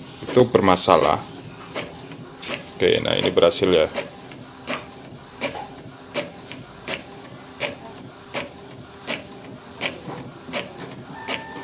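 A printer whirs and clicks rhythmically as it feeds a sheet of paper.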